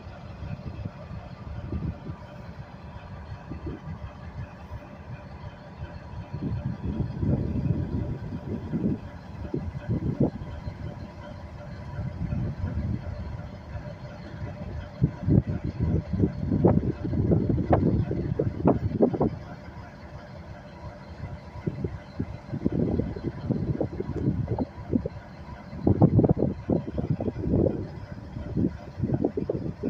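Diesel-electric locomotives rumble as they roll past.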